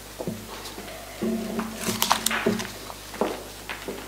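Paper rustles close by.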